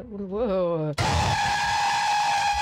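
A loud, shrill screech blares suddenly and close.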